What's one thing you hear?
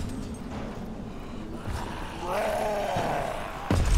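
A weapon thuds against a body.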